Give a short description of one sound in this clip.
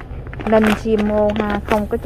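A plastic bag crinkles under a hand.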